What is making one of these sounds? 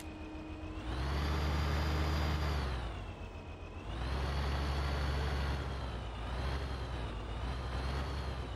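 A tractor engine drones, revving up and down as it drives.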